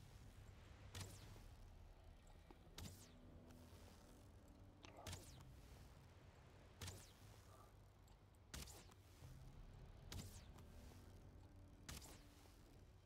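A bow twangs sharply as arrows are loosed, about every two seconds.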